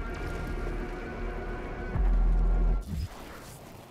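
A deep, steady rumble of fire and machinery drones, then cuts off abruptly.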